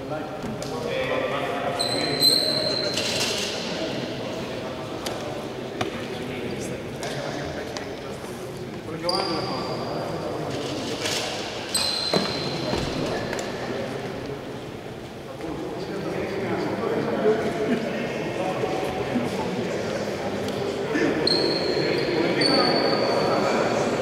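Young men call out and talk over one another in a large echoing hall.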